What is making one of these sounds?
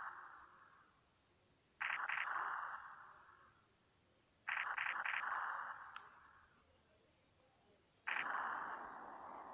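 A retro video game plays short bursts of hissing sound effects that slowly fade.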